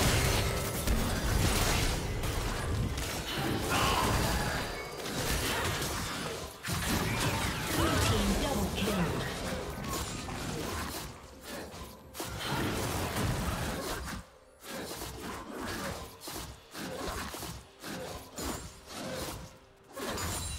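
Game spell effects whoosh, crackle and clash in a busy fight.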